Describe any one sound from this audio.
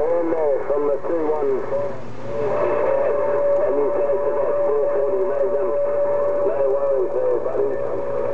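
Distorted voices talk through a crackling radio loudspeaker.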